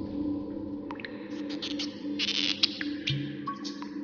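A cork squeaks and pops out of a glass bottle.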